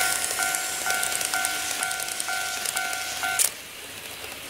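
An electronic model level crossing bell dings.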